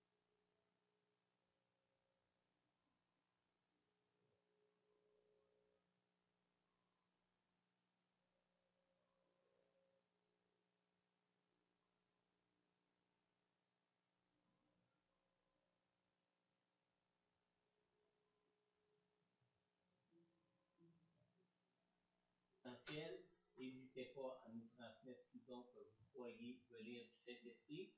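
A woman strums an acoustic guitar softly.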